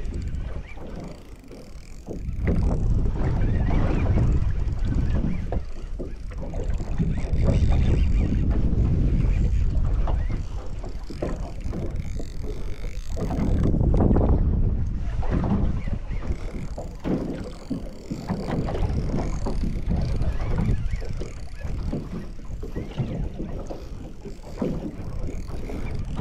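A fishing reel whirs and clicks as its handle is cranked.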